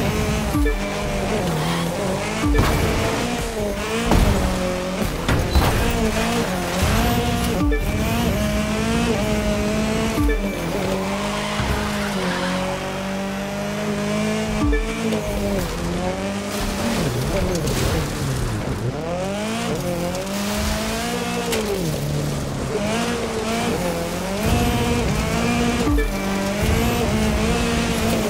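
A rally car engine roars and revs up and down as the car races.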